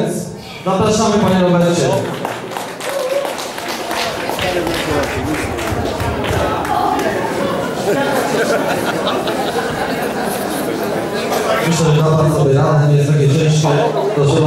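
A young man speaks with animation into a microphone, heard over loudspeakers in an echoing room.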